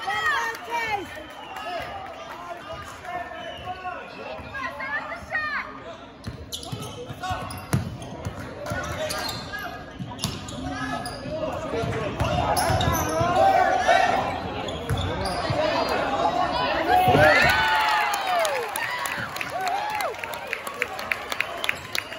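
A basketball bounces on the floor with hollow thuds.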